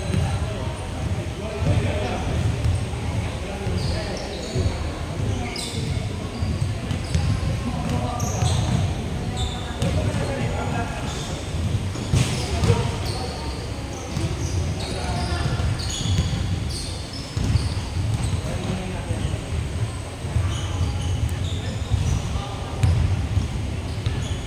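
A crowd of young people chatters and calls out in a large echoing hall.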